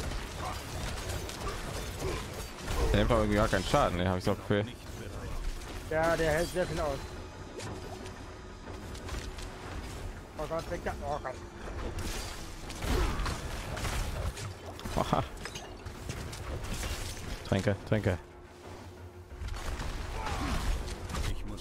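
Magic blasts and impacts crackle and boom in a fast fight.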